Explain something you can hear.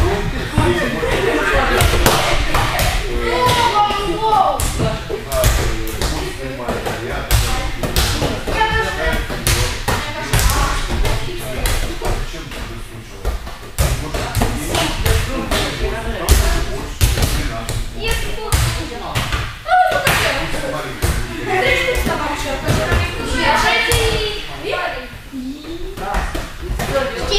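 Young girls talk and call out in a large echoing hall.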